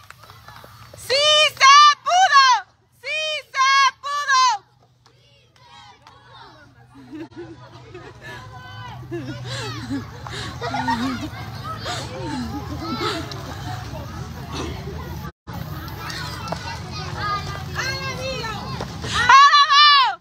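Women shout and cheer loudly.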